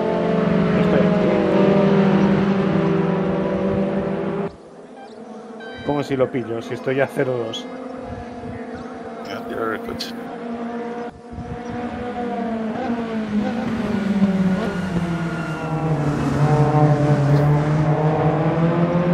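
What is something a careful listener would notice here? Racing car engines roar and whine as they rev up and shift gears.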